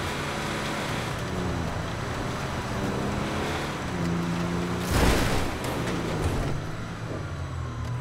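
A vehicle engine roars and changes pitch as it drives.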